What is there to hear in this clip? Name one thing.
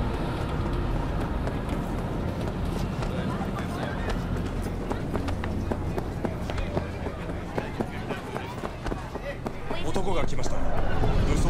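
People murmur and chatter nearby.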